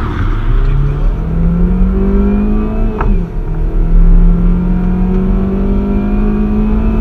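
A car engine revs hard inside the cabin, rising in pitch and dropping briefly at a gear change.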